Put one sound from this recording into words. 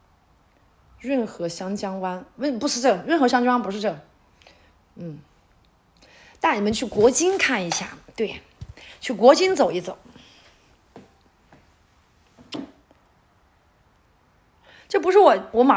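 A young woman talks close to a phone microphone with animation, in bursts with pauses.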